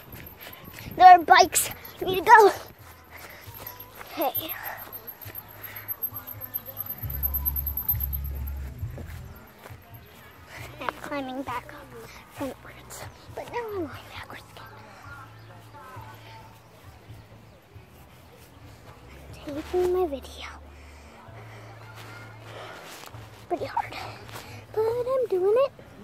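A young girl talks close to a phone microphone, in short bursts.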